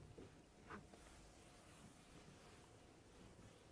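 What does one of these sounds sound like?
Chalk scratches on a blackboard.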